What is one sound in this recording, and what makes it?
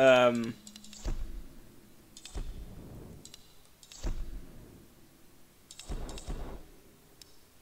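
Short menu blips and whooshes sound now and then.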